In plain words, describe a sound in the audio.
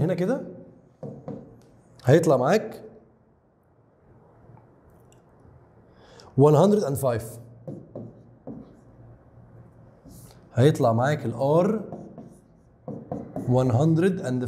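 A young man explains calmly into a close microphone, in short bursts with pauses.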